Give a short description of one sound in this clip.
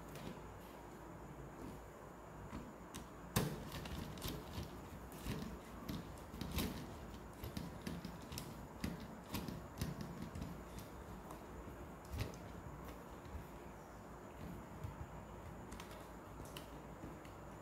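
Plastic parts click and snap as small switches are pushed into place.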